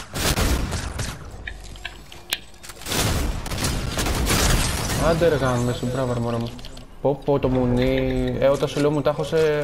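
A game character gulps a drink.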